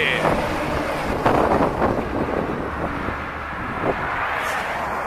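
A heavy truck rumbles past close by.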